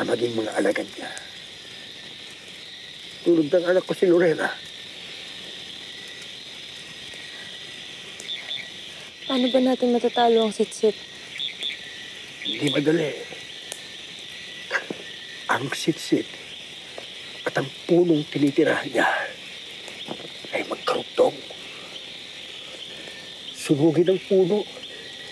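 An elderly man speaks slowly and with emotion, close by.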